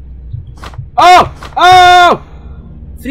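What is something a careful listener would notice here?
A young man shouts loudly into a close microphone.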